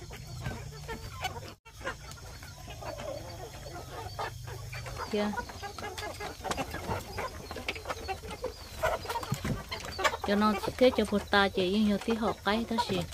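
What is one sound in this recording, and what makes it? Chickens cluck and cackle close by.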